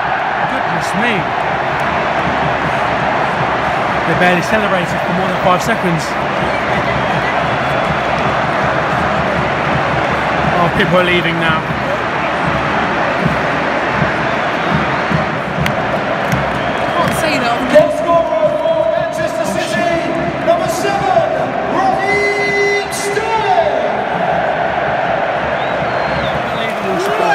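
A huge crowd sings and chants loudly in a vast open stadium.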